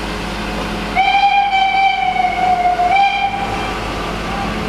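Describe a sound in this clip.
A steam locomotive's whistle blows loudly, in two blasts.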